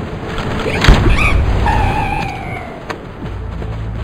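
An explosion bursts with a fiery roar.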